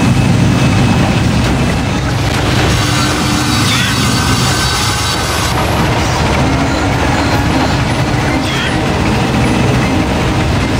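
A hovering craft's engine hums steadily.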